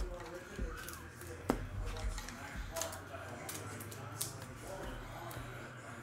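Trading cards rustle and flick as they are shuffled.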